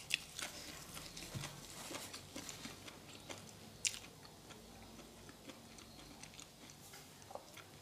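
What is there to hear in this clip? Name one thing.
A young woman chews and smacks her lips.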